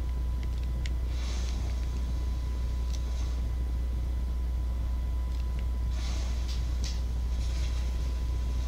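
Flames roar and crackle from a fire spell.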